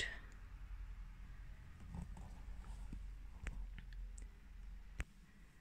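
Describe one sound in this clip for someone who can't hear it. Yarn rustles softly as it is pulled through knitted fabric.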